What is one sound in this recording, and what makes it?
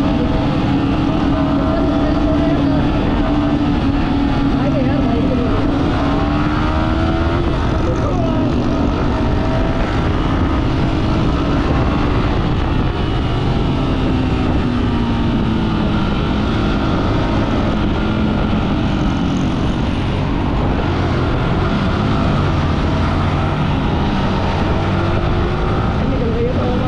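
Traffic drones by on a busy road.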